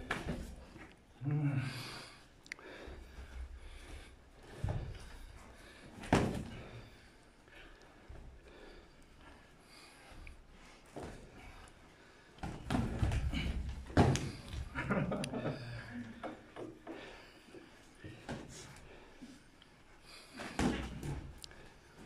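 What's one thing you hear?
Bare feet shuffle and thump on a hard floor.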